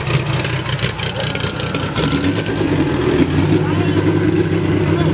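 A race car engine roars loudly as the car pulls away.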